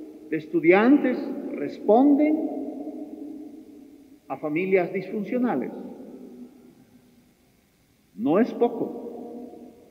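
An elderly man speaks slowly and solemnly through a microphone in a large echoing hall.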